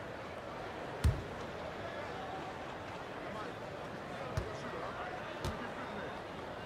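A basketball bounces a few times on a hardwood floor.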